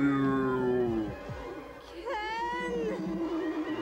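A young woman speaks with feeling through a film soundtrack.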